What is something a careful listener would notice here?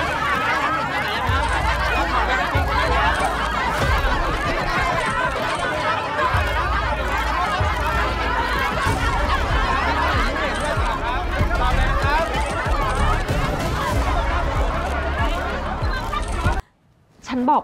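A crowd of reporters shouts and clamours loudly.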